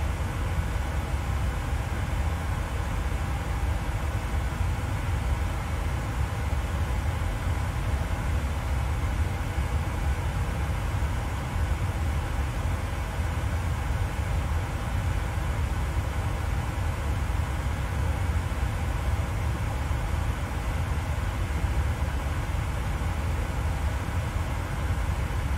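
A jet engine hums steadily with a low rumble.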